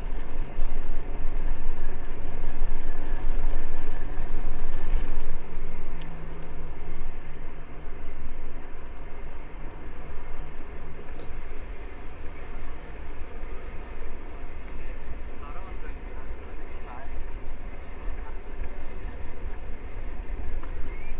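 Bicycle tyres roll and hum over pavement.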